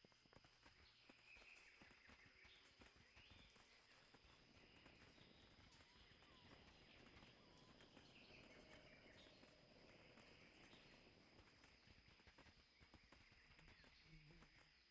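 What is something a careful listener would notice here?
Footsteps run along a dirt path.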